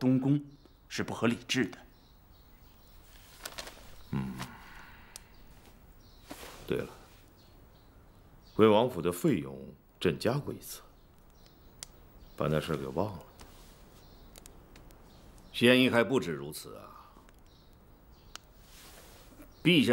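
A middle-aged man speaks slowly and gravely, close by, with long pauses.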